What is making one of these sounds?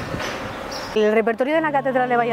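A middle-aged woman speaks calmly into a clip-on microphone, close by.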